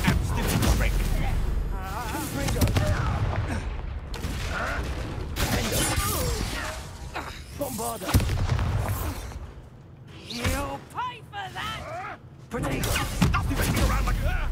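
Magic spells crackle and burst in quick bursts.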